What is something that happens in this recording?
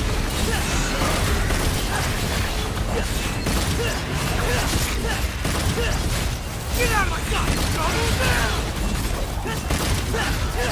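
Swords clash and slash against monsters in rapid bursts.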